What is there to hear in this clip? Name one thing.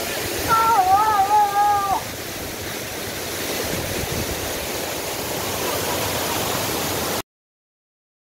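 Water rushes loudly over rocks nearby.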